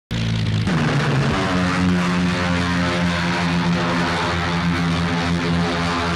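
Propeller engines of a large plane roar loudly as it flies low overhead.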